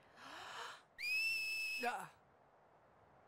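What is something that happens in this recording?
A loud, shrill finger whistle rings out and then stops.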